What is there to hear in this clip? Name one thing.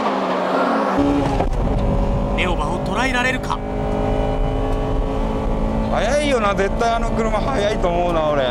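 A car engine revs high and drones loudly from inside the car.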